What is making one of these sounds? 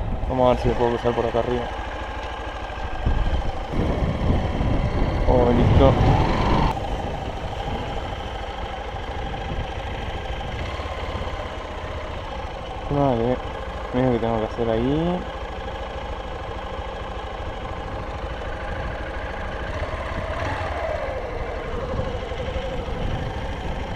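A motorcycle engine hums and revs steadily.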